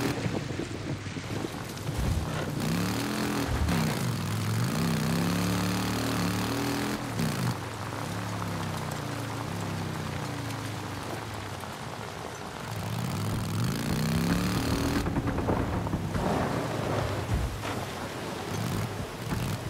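A motorcycle engine revs up and down as it rides.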